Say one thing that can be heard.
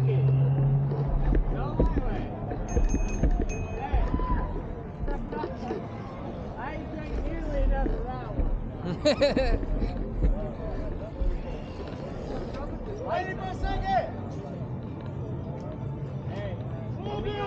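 A crowd of young people talk and shout nearby.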